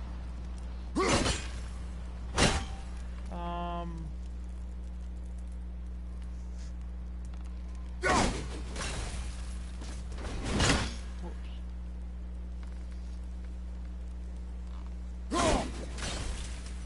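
An axe strikes ice with loud, sharp cracks, several times.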